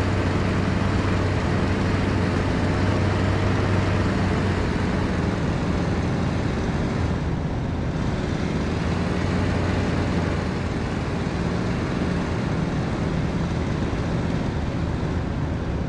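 Wind rushes over a plane's cockpit.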